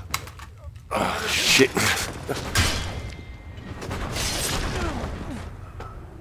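Blades clash and strike in a short fight.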